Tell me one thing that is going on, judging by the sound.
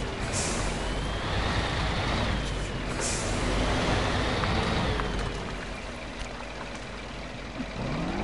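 A heavy truck engine rumbles and strains at low speed.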